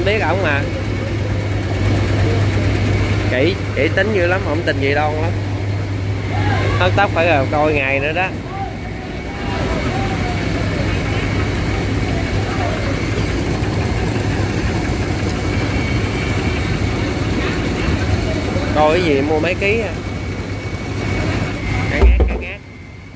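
Voices of a busy crowd chatter in the background.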